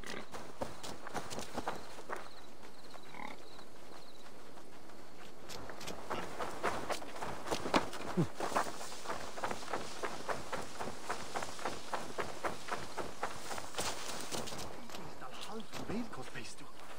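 Footsteps tread quickly over dirt and grass.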